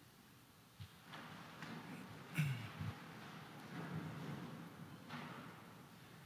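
Footsteps move softly across the floor.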